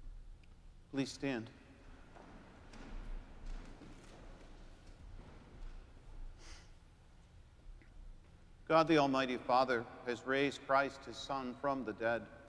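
A man sings, his voice echoing through a large hall.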